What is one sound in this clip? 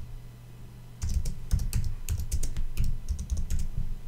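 Keyboard keys click rapidly as someone types.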